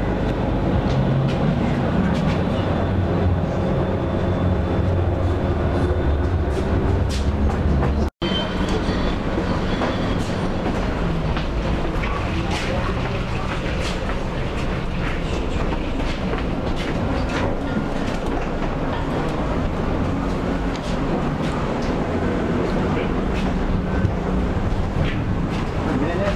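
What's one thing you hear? A tram rumbles and hums steadily while riding along the tracks.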